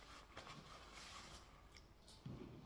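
A man wipes his mouth with a rustling tissue.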